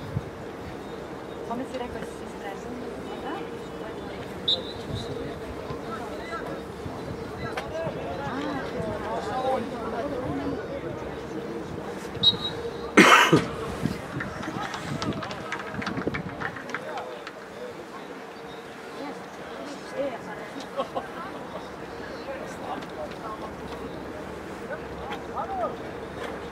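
Players shout to each other across an open outdoor field.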